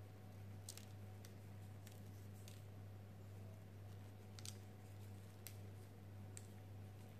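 Fingers sprinkle coarse sugar onto soft dough with faint, light patters.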